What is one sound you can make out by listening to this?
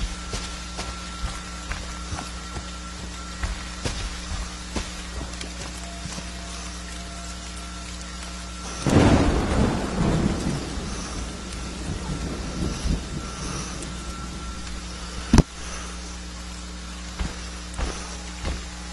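Heavy footsteps thud along at a run.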